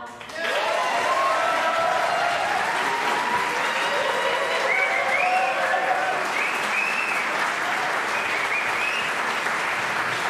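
An audience cheers and whistles.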